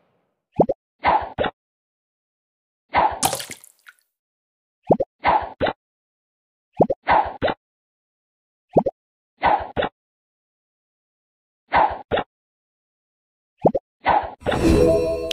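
Bubbles pop in quick bursts.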